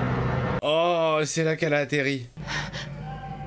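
A man exclaims with animation, close to a microphone.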